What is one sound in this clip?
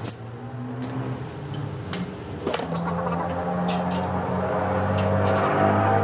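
Metal clanks.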